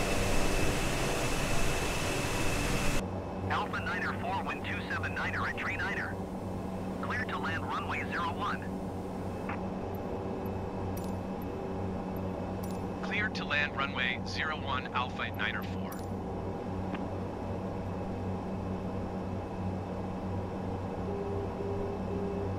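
Turboprop engines drone steadily, heard from inside a cockpit.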